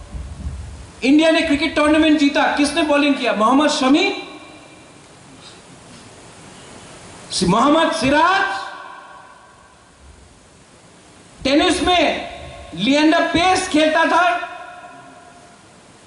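A man speaks forcefully through a microphone in bursts, his voice echoing in a large hall.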